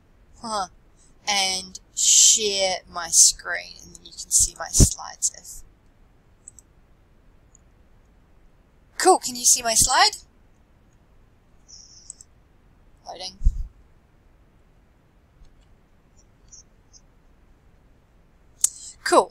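A young man speaks calmly over an online call, with pauses.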